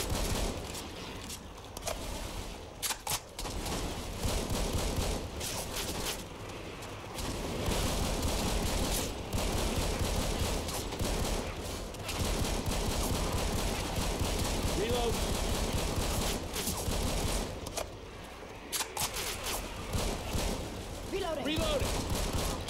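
Footsteps crunch steadily through grass and dirt.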